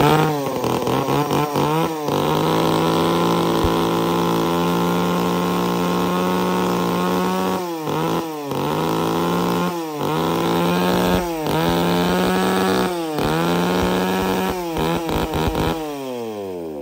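A chainsaw engine runs loudly nearby, revving up and down in short bursts.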